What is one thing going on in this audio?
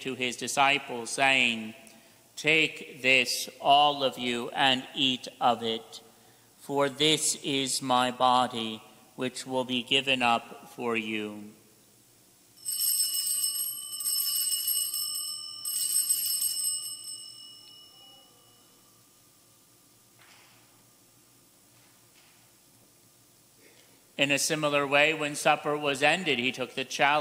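A middle-aged man speaks calmly through a microphone in an echoing room.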